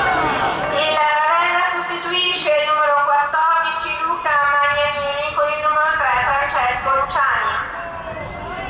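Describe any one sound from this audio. A crowd of spectators chants together in a loud, sustained song.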